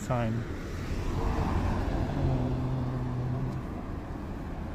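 A car drives past close by on the street.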